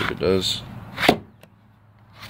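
A plastic holster knocks down onto wooden boards.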